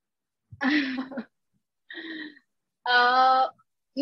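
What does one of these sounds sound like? A woman laughs softly over an online call.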